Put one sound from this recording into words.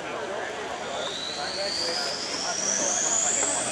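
A truck engine's high whine rises steadily in pitch.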